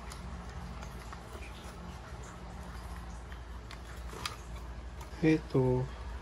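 Wires and plastic parts click softly as fingers handle them.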